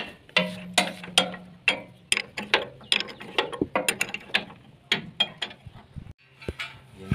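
A wrench clicks and clanks against metal bolts.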